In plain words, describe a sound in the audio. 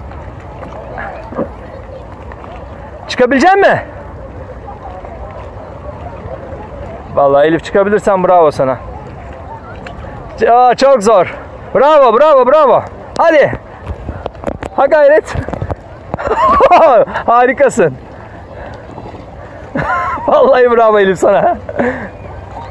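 Small waves lap gently against inflatable floats on open water.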